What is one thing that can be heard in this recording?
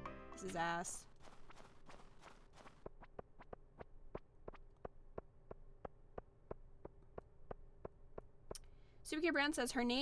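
Footsteps tap quickly and evenly on snow and stone.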